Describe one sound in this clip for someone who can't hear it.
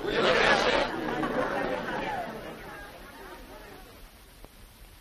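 A crowd of men and women cheers loudly, then the voices fade.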